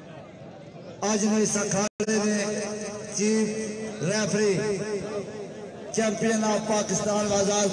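A camel groans and bellows loudly.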